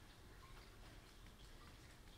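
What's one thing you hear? A wooden flute plays softly.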